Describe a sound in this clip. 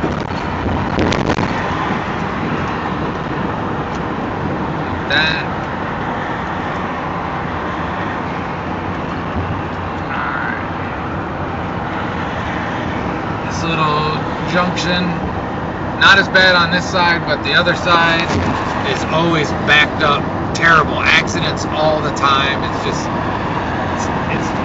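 A car drives along a highway with a steady rumble of tyres and wind.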